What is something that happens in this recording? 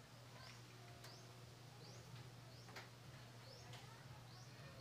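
A metal tool clicks and knocks against a bicycle frame.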